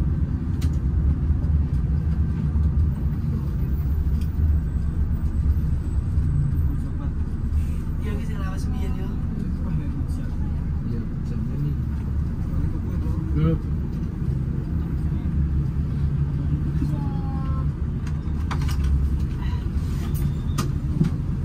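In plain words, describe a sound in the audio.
A large diesel engine rumbles steadily from inside a bus cab.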